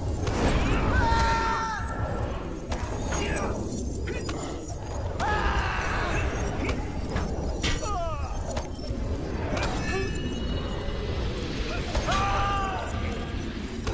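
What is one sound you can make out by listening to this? Magic spells ring out with bright, chiming tones.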